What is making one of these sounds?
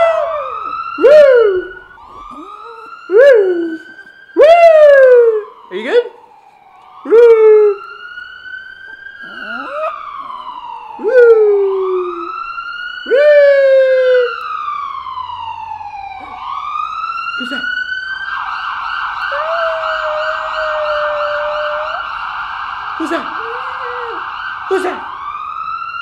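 A young man howls close to a microphone.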